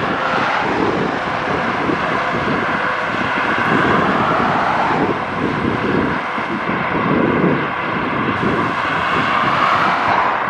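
Traffic rushes along a highway in the distance.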